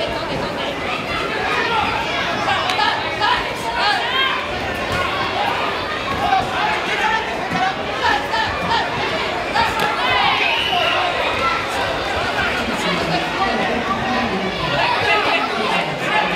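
A crowd of spectators shouts and cheers loudly throughout, echoing in a large hall.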